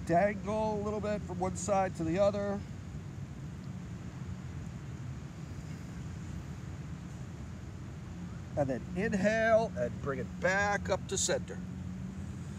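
An older man speaks calmly, guiding a stretch.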